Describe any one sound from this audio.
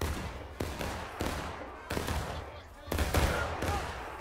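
Musket shots crack and echo through woods.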